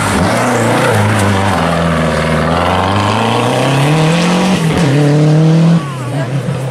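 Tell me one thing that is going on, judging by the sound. A rally car engine roars loudly at high revs.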